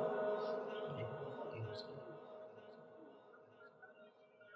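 A man chants a long held note into a microphone, slowly fading away.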